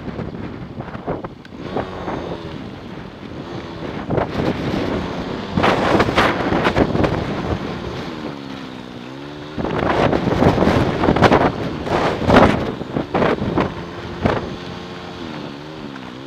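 A motorbike engine hums and changes pitch as it rides along.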